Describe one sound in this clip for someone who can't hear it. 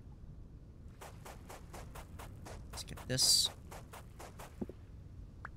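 A pickaxe chips rapidly at stone.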